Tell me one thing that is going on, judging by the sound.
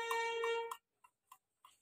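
A violin plays a short, sustained note close by.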